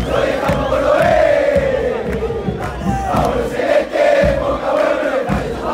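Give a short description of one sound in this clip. A large crowd of young men chants loudly in unison close by.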